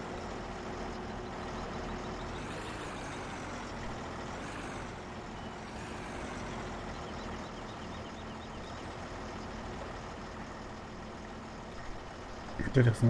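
A tractor engine idles with a steady low rumble.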